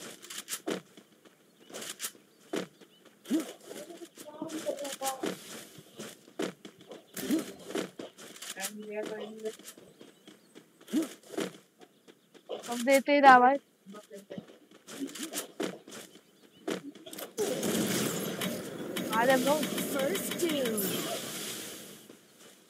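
Footsteps run over grass and wooden floors.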